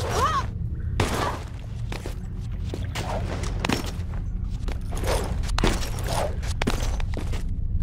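Hands slap and scrape against stone ledges.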